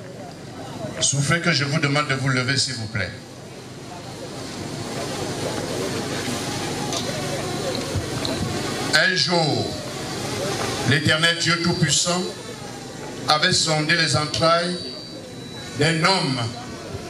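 A man speaks firmly through a microphone and loudspeakers, in short phrases with pauses.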